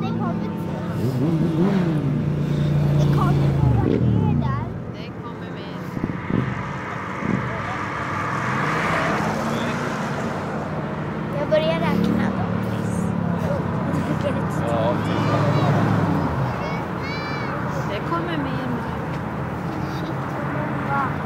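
Cars pass by one after another, their engine and tyre noise rising and falling.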